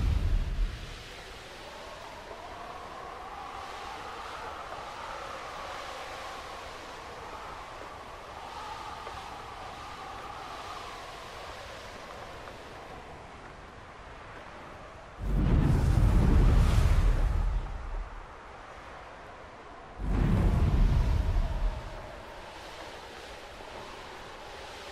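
Water splashes softly as a figure swims.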